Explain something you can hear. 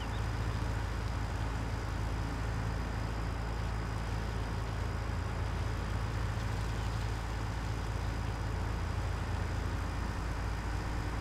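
A heavy diesel engine rumbles steadily.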